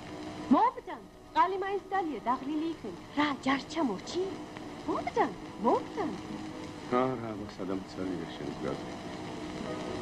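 A man sings in a wavering voice nearby.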